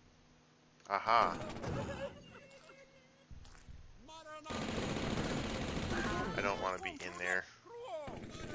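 A shotgun fires loud, booming blasts.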